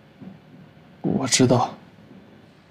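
A young man answers quietly, close by.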